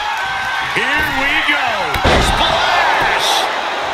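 A heavy thud sounds as a body slams onto the wrestling mat.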